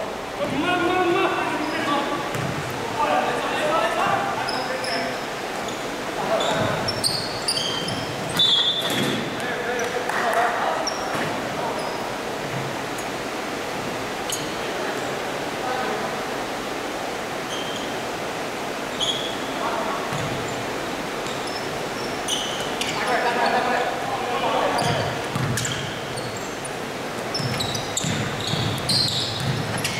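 Spectators near the court talk and call out.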